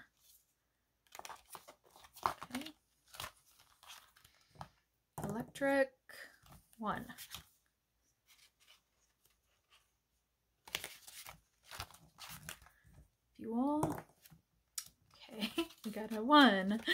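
Paper notes rustle and flick as hands sort them.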